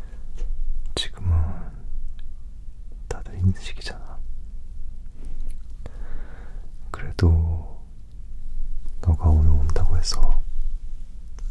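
A young woman whispers softly close to the microphone.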